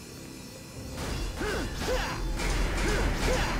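A magical blast bursts with a crackling whoosh.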